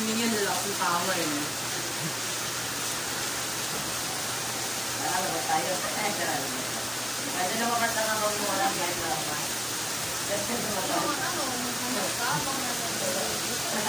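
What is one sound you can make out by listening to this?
Electric hair clippers buzz.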